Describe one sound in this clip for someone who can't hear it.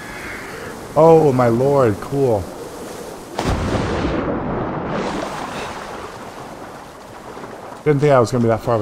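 An older man talks animatedly into a close microphone.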